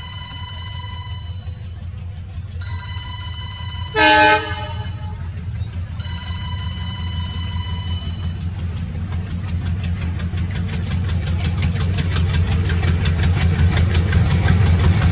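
A diesel locomotive rumbles as it approaches, growing louder.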